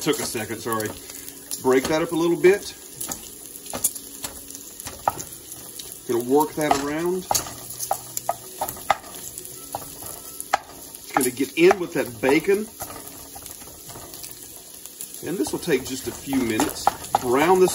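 A wooden spatula scrapes and taps against a pan.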